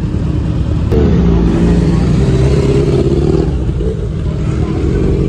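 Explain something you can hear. A motorcycle engine revs loudly as the bike pulls away.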